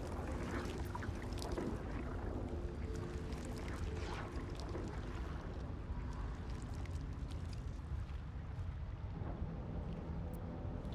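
Torch flames crackle softly.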